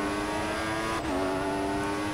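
A racing car engine briefly dips in pitch as it shifts up a gear.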